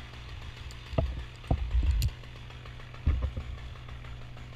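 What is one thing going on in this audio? Branches creak and rustle as they are handled close by.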